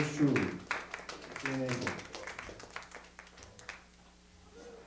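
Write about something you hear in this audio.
A band plays guitars and drums.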